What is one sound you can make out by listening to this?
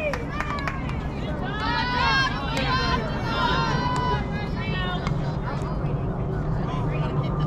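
Young women shout and cheer across an open outdoor field.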